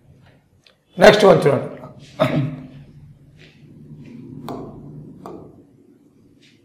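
A man speaks in a lecturing tone, close by.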